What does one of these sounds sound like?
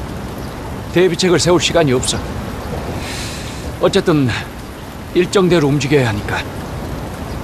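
A middle-aged man speaks calmly and firmly close by.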